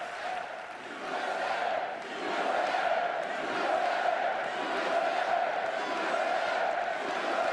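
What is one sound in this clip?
A large crowd chants together in unison.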